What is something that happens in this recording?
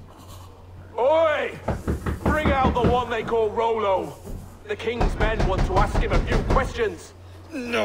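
A man shouts gruffly from a distance.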